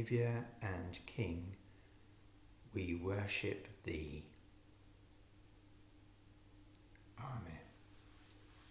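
An older man speaks calmly and close by, in short phrases with pauses.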